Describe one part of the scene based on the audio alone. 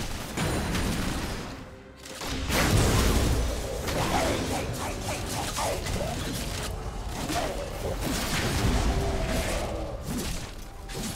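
Fantasy combat effects crackle, whoosh and burst in quick succession.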